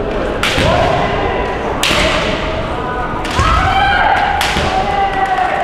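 Bamboo swords strike sharply with loud cracks in an echoing hall.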